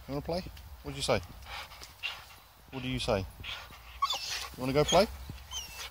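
A dog pants heavily close by.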